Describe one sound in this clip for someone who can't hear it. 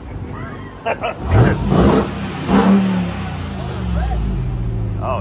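A truck engine cranks, starts and revs loudly.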